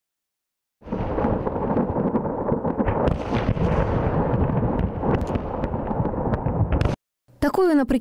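Explosions boom and crackle in the distance.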